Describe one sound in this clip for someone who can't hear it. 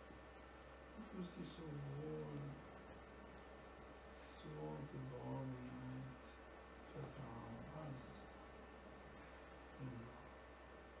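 A man speaks slowly and calmly, in short phrases with long pauses.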